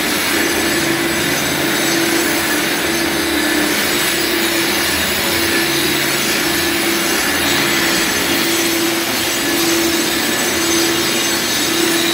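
A power grinder whines loudly as it grinds concrete.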